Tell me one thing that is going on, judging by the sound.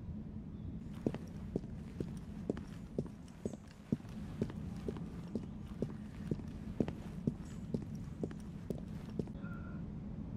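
Footsteps tap on a hard floor at a steady walking pace, echoing slightly.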